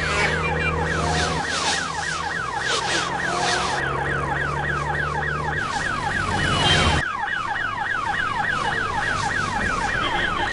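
A siren wails with a fast, repeating sweep.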